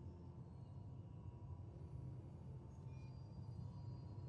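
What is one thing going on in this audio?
A spacecraft hums low as it glides overhead.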